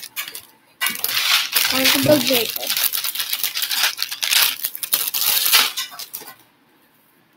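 Plastic bricks rattle and clatter as a hand rummages through a bin.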